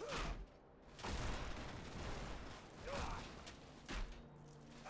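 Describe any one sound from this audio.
Metal debris crashes and clatters loudly.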